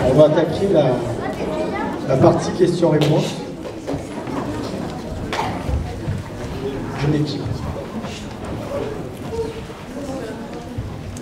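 A man speaks with animation into a microphone, heard over loudspeakers in a large echoing hall.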